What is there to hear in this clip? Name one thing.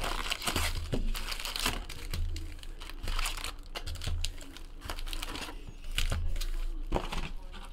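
A cardboard box rustles and scrapes as hands open it.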